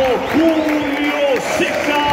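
A large crowd chants and sings in a stadium.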